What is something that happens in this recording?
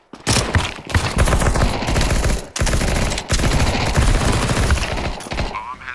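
A gun is reloaded with metallic clicks.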